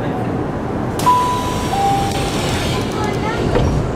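Train doors slide open with a hiss.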